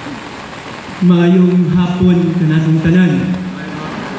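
A man sings through loudspeakers, echoing across an open space.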